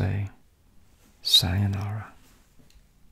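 An elderly man speaks briefly and calmly into a close microphone.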